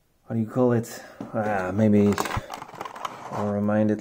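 A plastic tray crinkles as a small toy car is lifted out of it.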